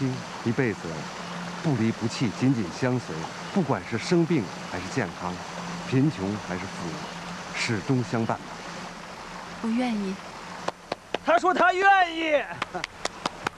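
A man speaks calmly and clearly.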